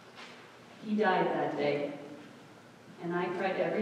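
A clarinet plays a melody in a large echoing hall.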